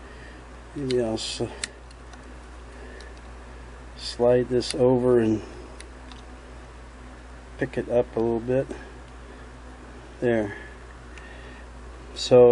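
A screwdriver clicks and scrapes against small metal parts.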